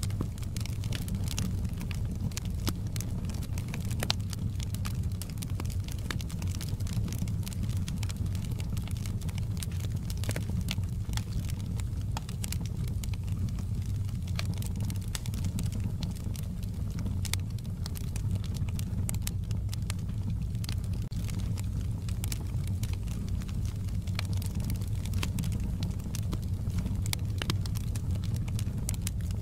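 Flames roar with a low, steady rumble.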